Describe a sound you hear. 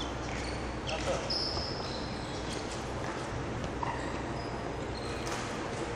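A shuttlecock is struck with a racket in an echoing hall.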